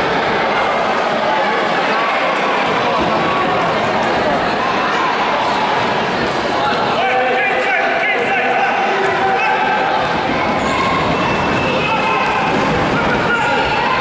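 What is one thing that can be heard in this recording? A crowd chatters and calls out in an echoing sports hall.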